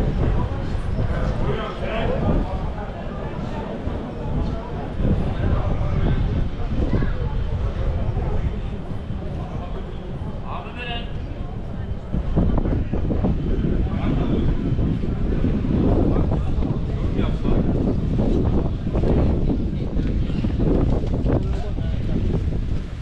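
Voices of a crowd of passers-by murmur outdoors.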